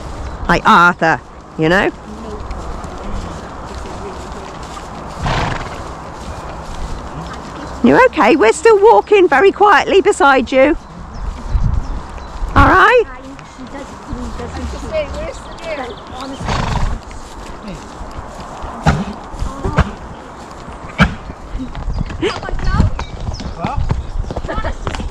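Horse hooves thud steadily on a dirt track.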